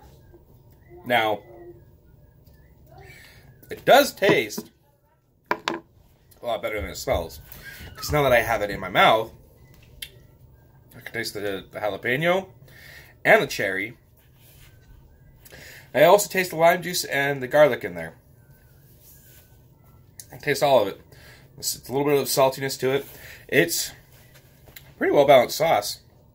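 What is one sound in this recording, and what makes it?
A man talks calmly and close up, in short bursts with pauses.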